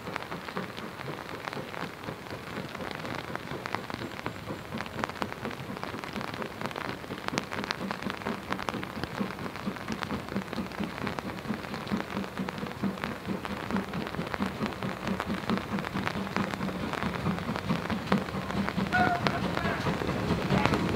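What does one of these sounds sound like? A steam locomotive chuffs rhythmically, growing louder as it approaches.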